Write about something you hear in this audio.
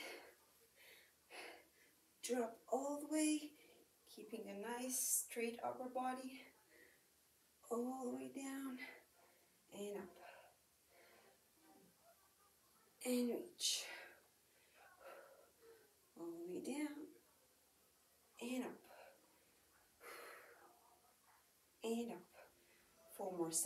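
A young woman talks calmly, giving instructions, close by.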